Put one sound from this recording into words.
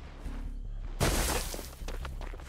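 A loud bang bursts out suddenly.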